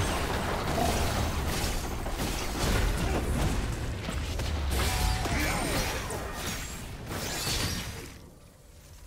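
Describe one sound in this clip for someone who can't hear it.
Video game spells crackle and clash during a fight.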